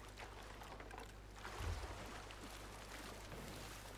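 Waves wash gently against a wooden hull.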